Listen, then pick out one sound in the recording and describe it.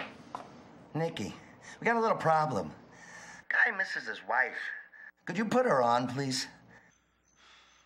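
A man groans and cries out in pain close by.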